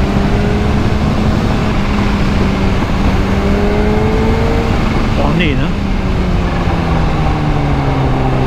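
A motorcycle engine hums steadily as it rides along a road.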